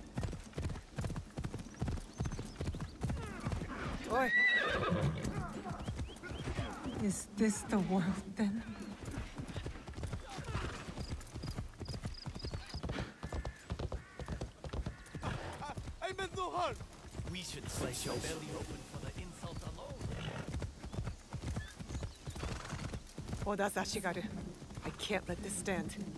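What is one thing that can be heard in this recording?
Horse hooves clop steadily on a path.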